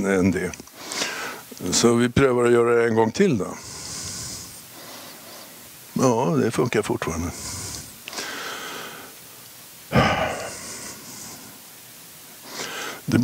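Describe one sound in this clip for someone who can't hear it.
An elderly man speaks with animation into a microphone in a large echoing hall.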